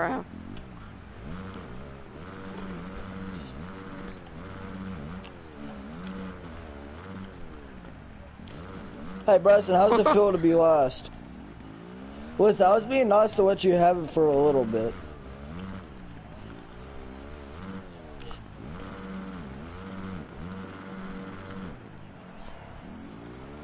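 A motorbike engine revs and whines steadily.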